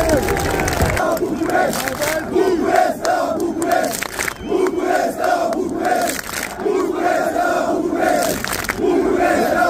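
A crowd claps hands overhead in time.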